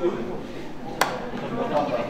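Two hands slap together in a high five.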